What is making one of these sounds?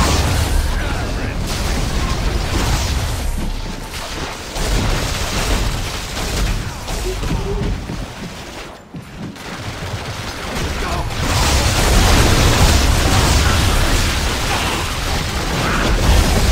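Energy blasts zap and crackle.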